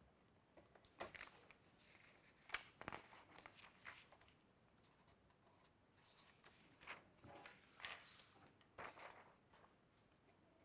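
Sheets of paper rustle and slide.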